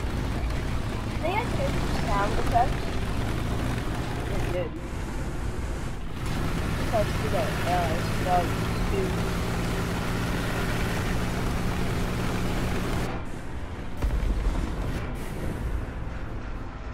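A tank engine rumbles steadily at low pitch.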